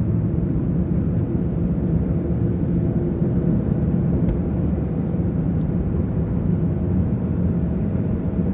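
A car's engine hums and its tyres roar steadily on the road, heard from inside.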